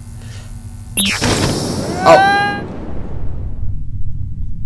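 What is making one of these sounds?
A hatch bursts open with a rushing whoosh of air.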